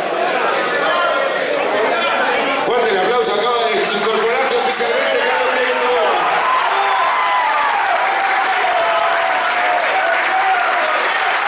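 A man shouts with excitement through a loudspeaker in a large echoing hall.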